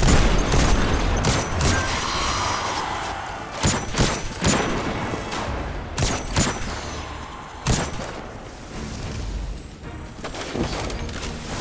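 Rifle shots fire in bursts, each with a sharp crack and short echo.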